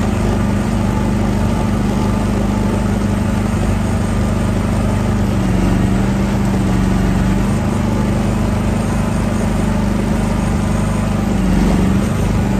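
An excavator bucket scrapes and digs through soil.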